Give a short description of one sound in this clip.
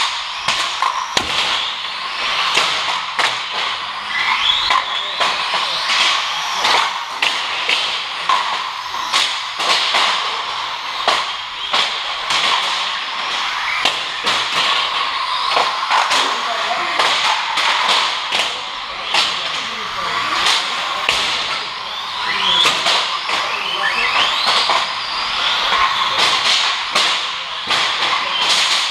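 Electric remote-control cars whine as they race past, close by and then far off.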